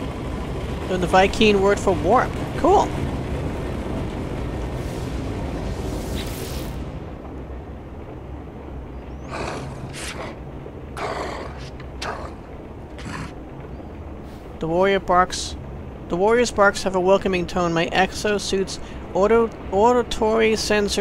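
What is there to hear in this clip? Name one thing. A creature voice growls and barks in short gruff bursts.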